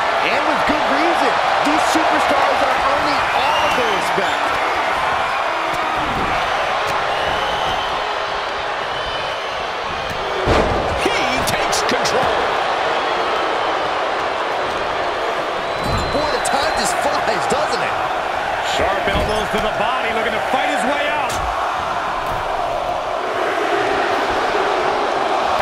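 A large arena crowd cheers and roars steadily.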